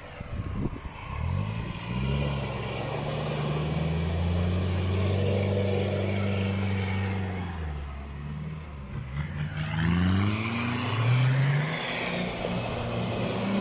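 An off-road vehicle's engine revs hard as it climbs out of the water.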